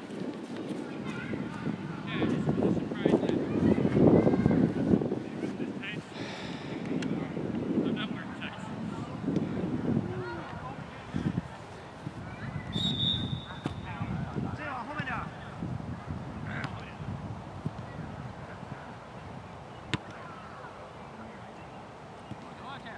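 Young men shout and call to each other across an open field, some way off.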